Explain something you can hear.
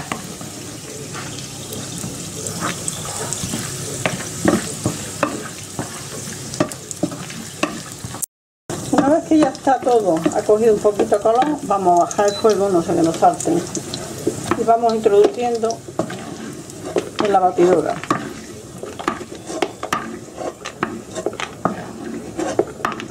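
A wooden spoon scrapes and taps against a frying pan.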